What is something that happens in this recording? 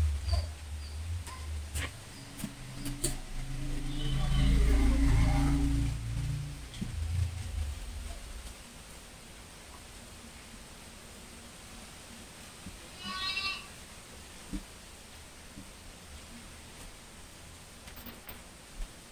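A chalk squeaks and taps on a board.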